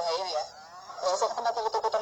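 A boy speaks cheerfully nearby.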